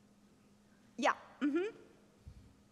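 A woman exclaims briefly into a microphone.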